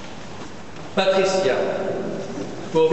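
A boy speaks into a microphone in a large echoing hall.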